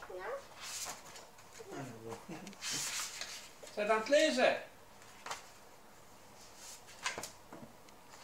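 Book pages rustle and flap as a toddler turns them.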